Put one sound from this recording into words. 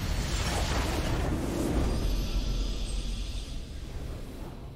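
A structure explodes with a deep blast.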